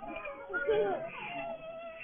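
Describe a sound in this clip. A baby laughs.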